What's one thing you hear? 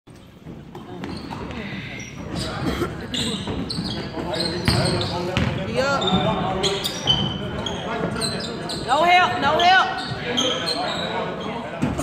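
Spectators and players chatter and call out in the echoing hall.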